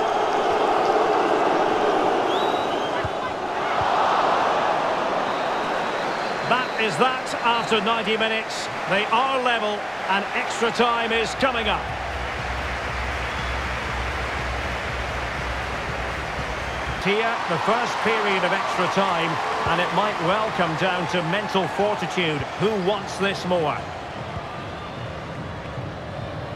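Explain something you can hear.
A large stadium crowd roars and cheers.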